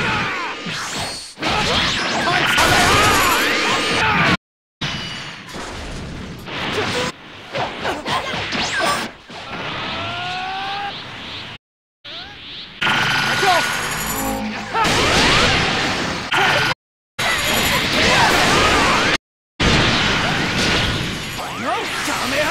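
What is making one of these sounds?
Energy blasts whoosh and roar in a fast fight.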